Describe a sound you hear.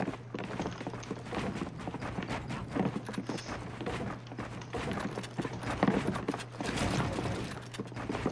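Wooden walls and ramps snap into place in quick clattering bursts.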